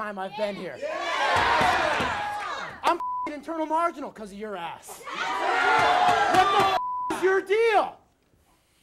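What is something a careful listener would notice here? A crowd of young people cheers and yells loudly.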